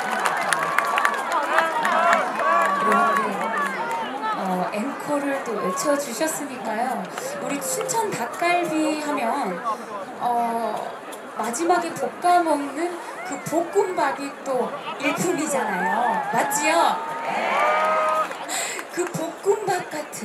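A young woman speaks with animation through a microphone over loudspeakers.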